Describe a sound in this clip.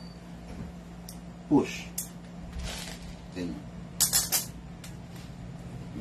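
A gun's metal parts click and rattle.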